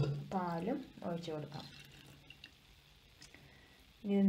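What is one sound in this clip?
Liquid pours into a metal pot.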